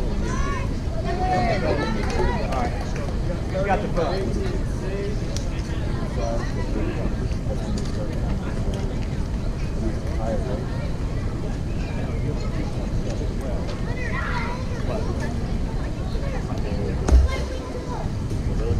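Boys and adults call out and chatter across an open ballfield.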